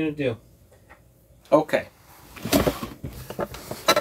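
A cardboard box is set down on a table with a soft thud.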